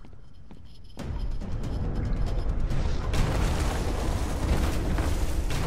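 Footsteps splash quickly through shallow water.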